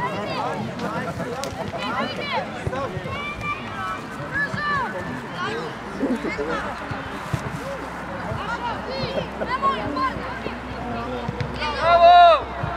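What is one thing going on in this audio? Young boys shout and call out to each other across an open field.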